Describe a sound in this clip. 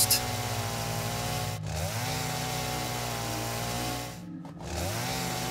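A chainsaw engine drones steadily and revs up and down.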